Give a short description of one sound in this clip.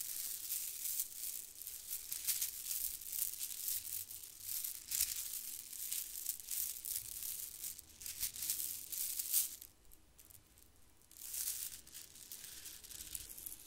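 Plastic beads clatter and rattle close to a microphone.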